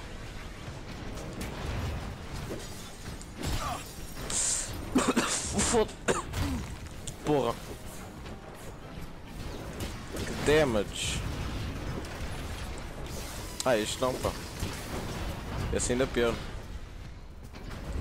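Heavy metal machines clank and crash in a fight.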